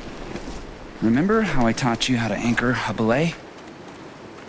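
A young man speaks calmly and warmly, close by.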